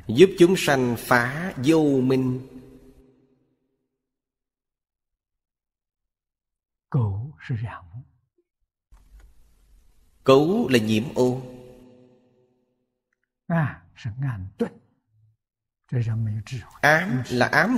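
An elderly man speaks calmly into a close microphone, with long pauses.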